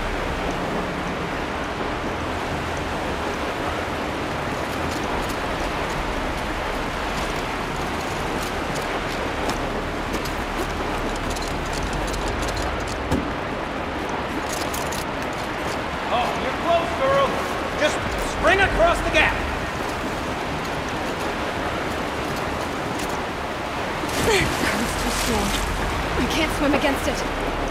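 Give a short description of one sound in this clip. Water rushes and roars steadily nearby.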